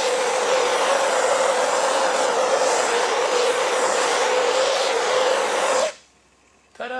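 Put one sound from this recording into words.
A propane torch roars steadily.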